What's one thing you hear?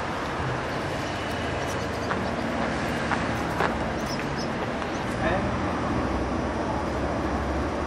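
Footsteps walk on paving stones.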